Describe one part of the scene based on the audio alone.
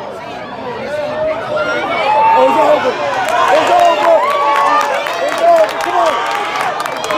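A man close by shouts excitedly.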